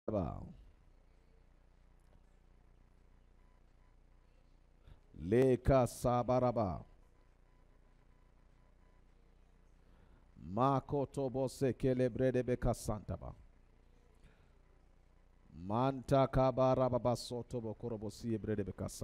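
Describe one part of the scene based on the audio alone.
A man speaks calmly into a headset microphone, in short bursts with pauses.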